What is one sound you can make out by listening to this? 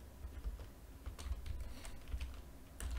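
Keyboard keys click as a man types.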